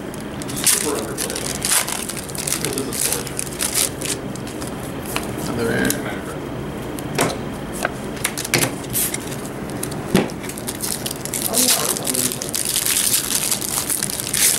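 Playing cards slap and shuffle against each other.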